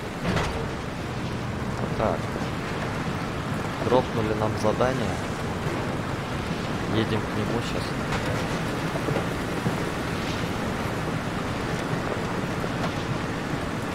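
A vehicle engine rumbles steadily as it drives along a rough dirt track.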